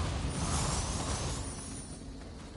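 A sword strikes with a sharp, crackling burst.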